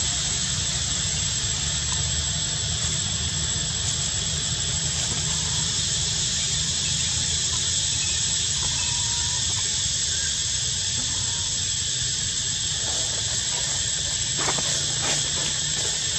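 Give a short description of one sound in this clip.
Leaves and branches rustle as a monkey climbs among them.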